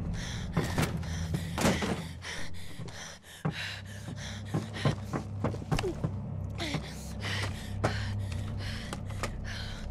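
A wooden crate scrapes and thumps as it is pushed.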